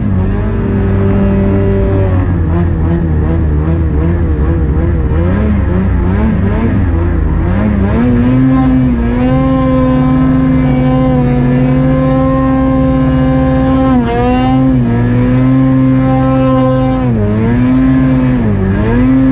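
A snowmobile engine roars and revs up and down.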